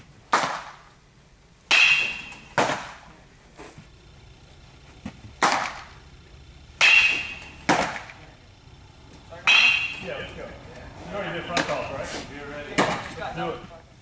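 A baseball pops into a catcher's mitt in a large echoing hall.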